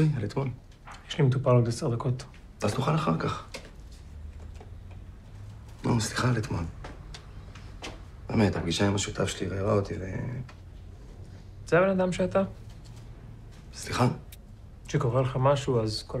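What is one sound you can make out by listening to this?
A second man answers in a questioning, tense voice, close by.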